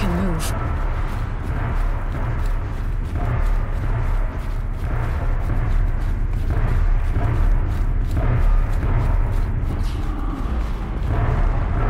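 Footsteps run on a metal walkway.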